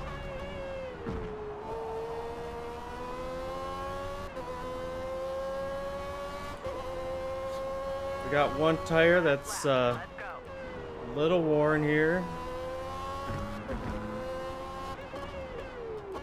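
A racing car's gears shift with short clunks.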